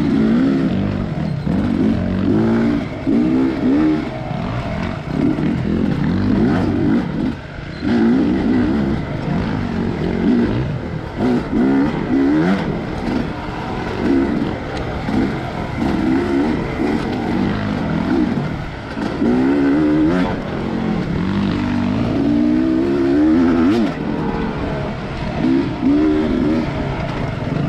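Tyres crunch over a dirt trail.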